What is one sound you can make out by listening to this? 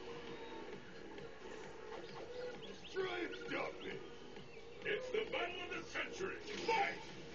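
Game music plays steadily through a tinny speaker.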